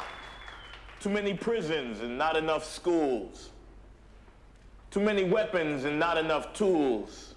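A young man speaks slowly and solemnly into a microphone.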